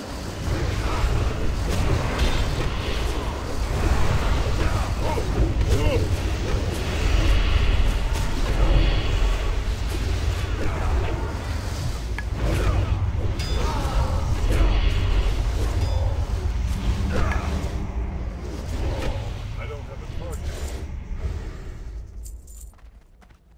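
Weapons clash and magic spells burst in a loud, busy battle.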